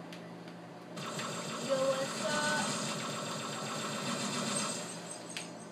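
Energy weapons fire in rapid, crackling bursts.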